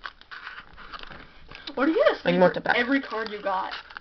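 A foil card pack crinkles as hands handle it.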